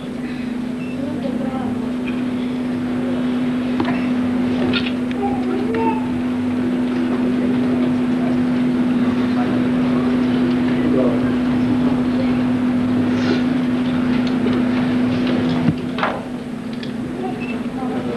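A large crowd chants and cheers loudly in an echoing hall.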